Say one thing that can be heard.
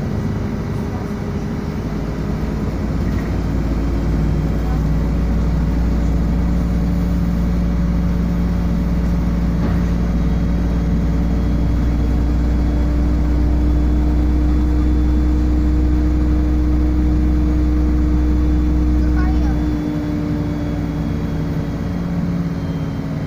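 A bus engine hums and drones steadily from inside.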